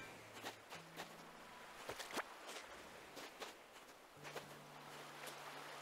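Gentle waves wash softly onto a sandy shore.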